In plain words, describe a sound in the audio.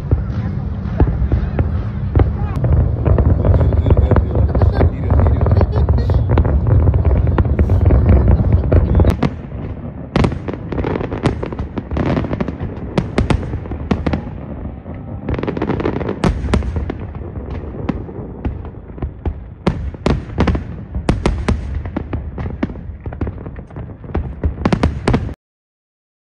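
Fireworks boom and crackle loudly nearby.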